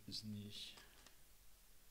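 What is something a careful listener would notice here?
A man murmurs briefly close to a microphone.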